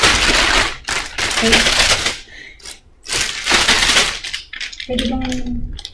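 A plastic bag crinkles and rustles loudly close by.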